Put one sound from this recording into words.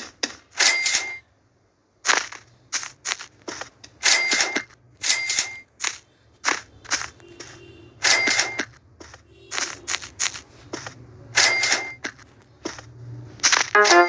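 Blocks crunch repeatedly as they are broken in a game.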